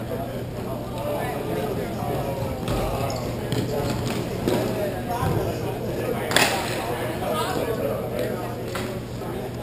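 Sticks clack against a puck in a large echoing hall.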